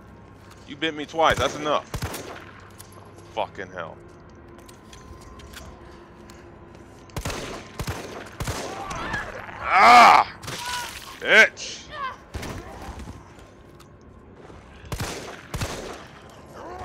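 Pistol shots ring out in short bursts.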